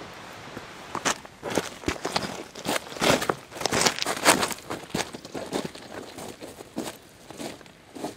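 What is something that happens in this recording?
Hiking boots crunch and clatter on loose rocks.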